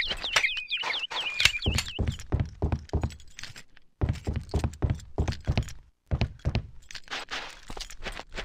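Footsteps thud steadily on wooden planks, then on softer ground.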